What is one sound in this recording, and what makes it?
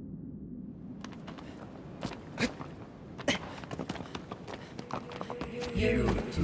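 Footsteps run quickly across stone.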